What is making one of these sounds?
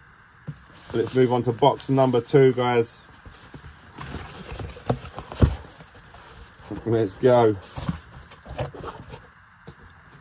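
A cardboard box scrapes and rustles as it is handled and opened.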